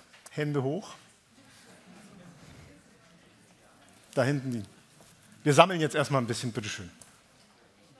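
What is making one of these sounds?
A middle-aged man speaks into a microphone with animation, in short bursts.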